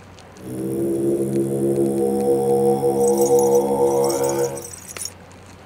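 A young man chants a long, steady hummed syllable.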